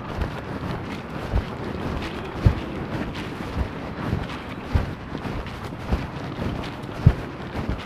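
A bicycle rolls past on pavement.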